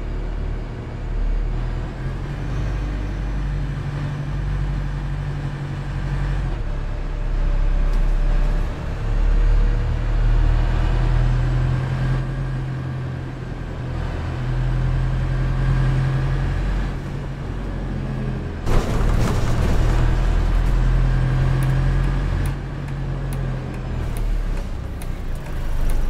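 A bus engine hums and rumbles steadily, rising and falling as it speeds up and slows.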